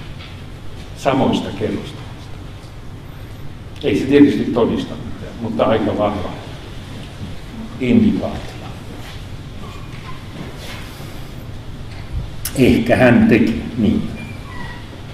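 A man speaks through a microphone in a large echoing hall, in short bursts with pauses.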